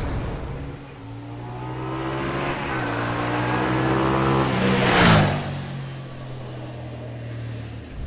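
A motorcycle approaches, roars past close by and fades away.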